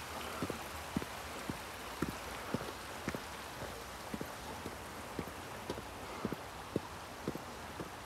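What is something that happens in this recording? Footsteps crunch steadily on a paved road outdoors.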